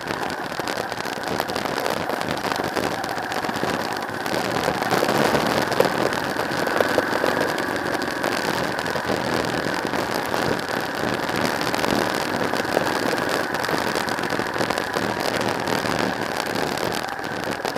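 Tyres crunch and rattle over a rough dirt track.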